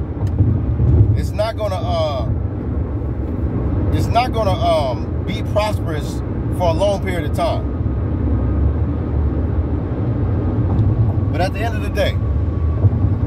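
A car's engine and road noise rumble low and steady throughout.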